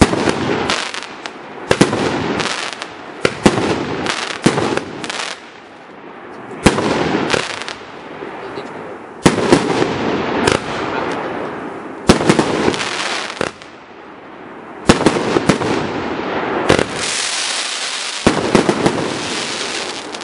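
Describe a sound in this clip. Firework stars crackle and fizz after each burst.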